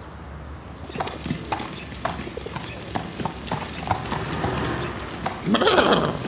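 Hooves clop on pavement.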